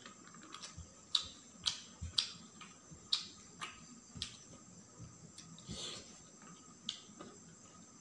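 Fingers scrape and tap on a metal plate.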